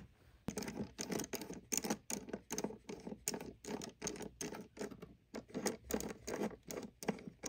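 A precision screwdriver turns a small screw in a hard drive.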